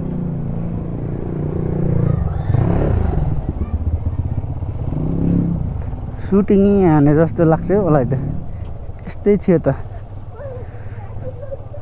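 A motorcycle engine idles and putters at low speed.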